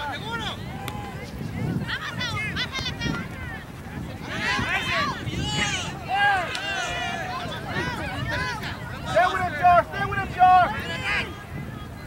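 Young men shout to one another loudly outdoors.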